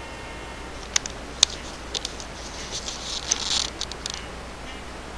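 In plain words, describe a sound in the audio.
A cat's paws knock and scratch on a hard surface close by.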